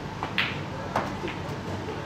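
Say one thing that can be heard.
Snooker balls knock together with a hard clack.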